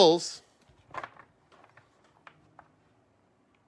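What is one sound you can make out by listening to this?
Plastic card holders click and tap together in a hand.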